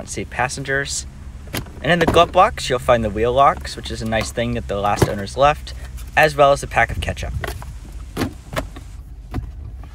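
A glove box lid opens and shuts with a thud.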